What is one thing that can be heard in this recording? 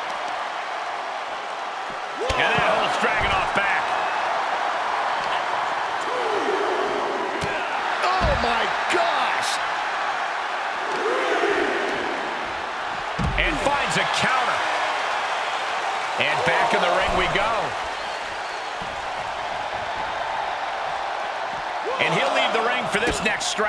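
A large crowd roars steadily in a big arena.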